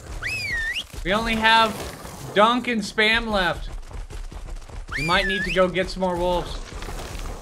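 A creature yelps and howls in high, wavering cries.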